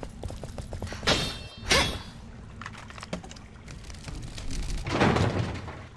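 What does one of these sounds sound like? A metal lever clanks as it turns.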